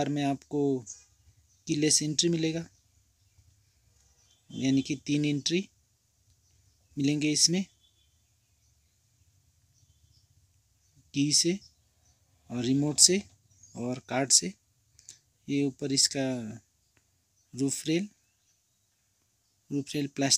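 A man talks calmly and close by, in short phrases with pauses.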